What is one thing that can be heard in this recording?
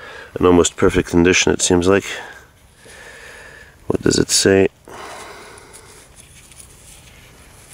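A metal blade scrapes through dry, gritty soil.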